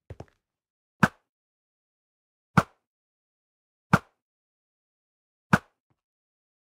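A bow twangs sharply as arrows are shot, one after another.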